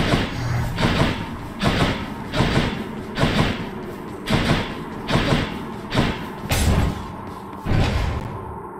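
Quick whooshing dashes sound again and again.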